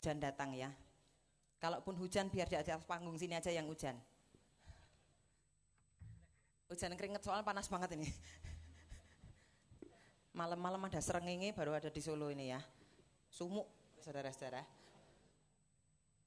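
A woman sings into a microphone, heard through loudspeakers.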